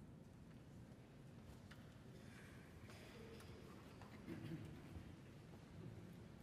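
An orchestra plays softly in a large echoing hall.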